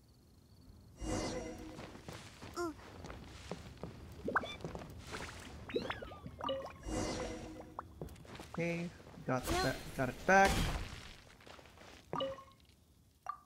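Whooshing and rustling effects sound as a character climbs and leaps.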